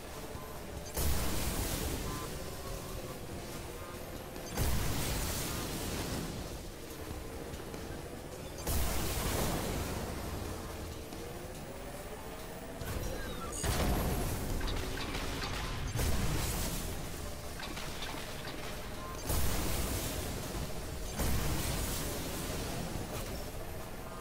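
Bursts of rushing wind roar as a racing craft boosts.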